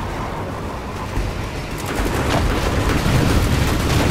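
A vehicle engine roars at speed.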